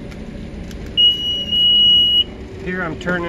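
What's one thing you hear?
An electronic device gives a steady high beep.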